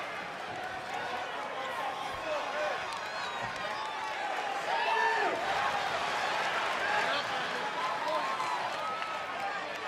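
A large crowd cheers and whistles in a big echoing arena.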